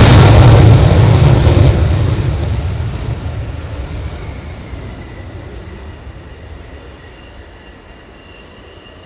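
A jet engine roars loudly on takeoff and fades into the distance.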